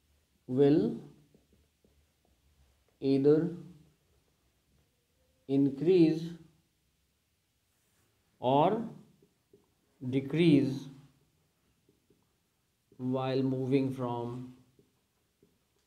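A man speaks calmly and slowly in short phrases, close to the microphone.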